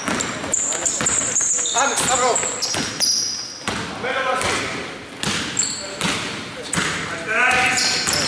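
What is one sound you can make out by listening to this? A basketball is dribbled, bouncing on a hardwood floor.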